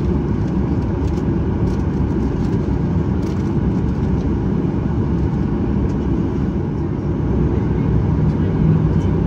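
A jet engine hums steadily with a low roar, heard from inside an airliner's cabin.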